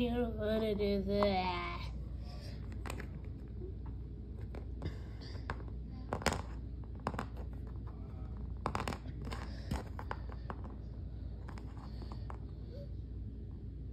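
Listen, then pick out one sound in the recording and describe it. Small plastic toys tap and clack on a hard floor.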